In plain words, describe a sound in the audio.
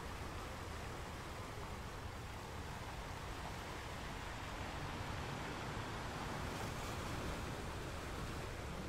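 Ocean waves crash and roll steadily onto rocks.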